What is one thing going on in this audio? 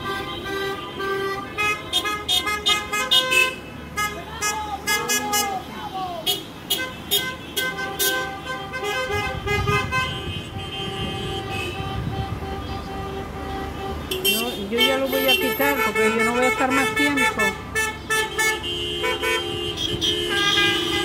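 Cars drive past on a street below.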